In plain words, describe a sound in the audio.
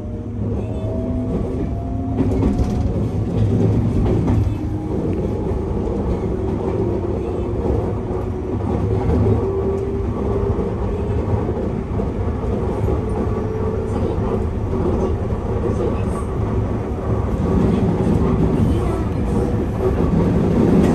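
An electric train motor whines, rising in pitch as the train speeds up.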